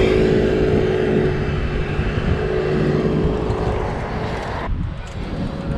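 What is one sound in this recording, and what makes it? Wind rumbles and roars past.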